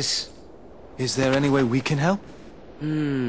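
A young man asks a question.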